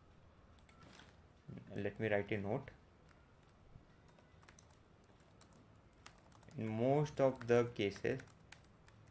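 Keyboard keys click rapidly in quick bursts.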